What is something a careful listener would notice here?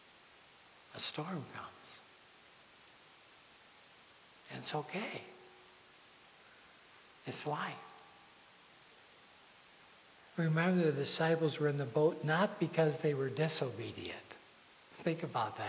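A man speaks calmly through a microphone in a large echoing hall, pausing between phrases.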